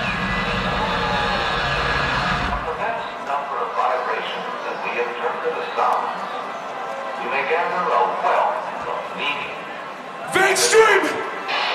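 A large crowd chatters and shouts outdoors.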